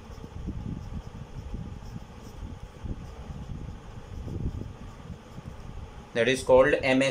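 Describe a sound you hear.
A marker scratches softly across a whiteboard.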